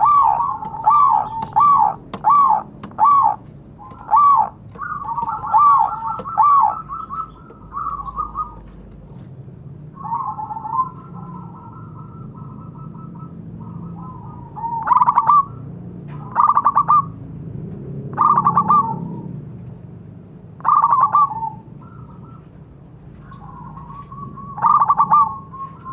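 A zebra dove coos in trilling, bubbling phrases.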